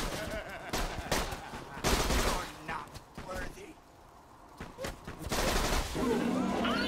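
Gunfire cracks in short bursts.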